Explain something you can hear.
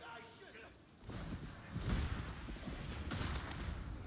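A loud magical blast whooshes and roars.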